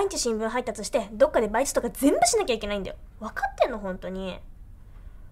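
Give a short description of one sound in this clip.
A young woman speaks reproachfully, close by.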